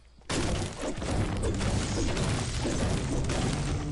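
A pickaxe chops repeatedly into a tree trunk.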